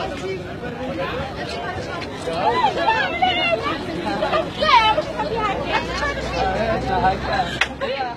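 A young woman speaks loudly up close.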